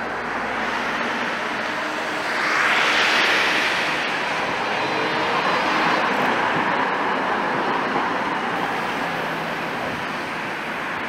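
A tram rolls past close by, its wheels rumbling on the rails.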